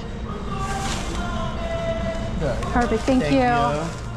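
A plastic bag rustles as it is lifted.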